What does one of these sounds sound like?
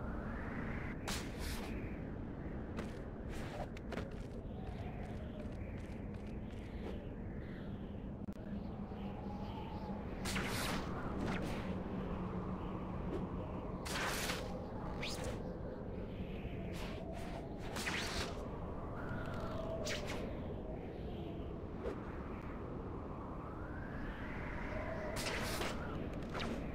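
Webs shoot out with sharp whooshing snaps again and again.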